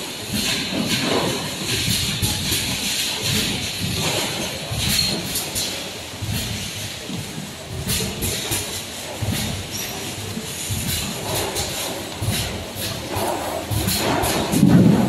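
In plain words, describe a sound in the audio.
Machinery hums and rattles steadily.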